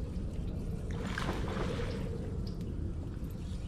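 Water splashes as a fish is pulled toward a boat.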